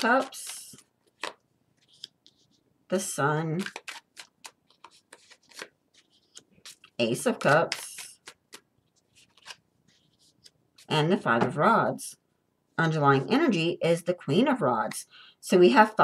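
Playing cards are laid softly on a table one at a time.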